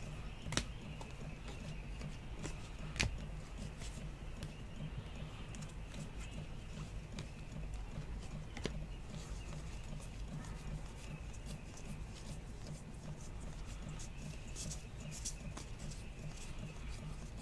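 Trading cards slide and flick against each other as they are shuffled by hand.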